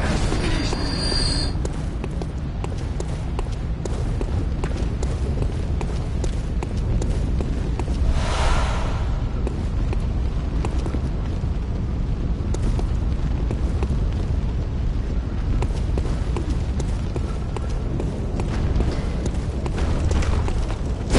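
Footsteps clatter on cobblestones.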